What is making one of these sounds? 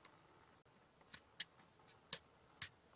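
A plastic stick taps and scrapes in a plastic tray.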